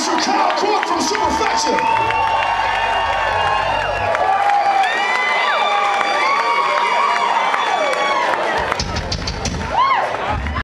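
Electric guitars play loudly in a live concert.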